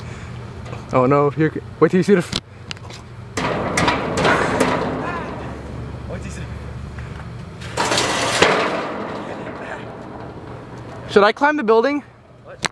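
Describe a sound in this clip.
A man speaks nearby in a calm voice, outdoors.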